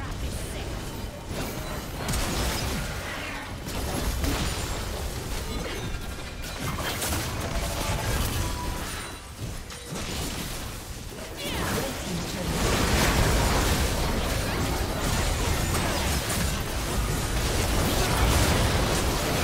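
Game spells and attacks crackle, whoosh and clash in a busy battle.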